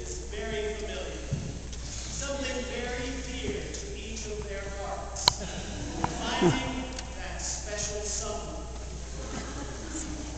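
An elderly man speaks calmly to an audience in a large echoing hall.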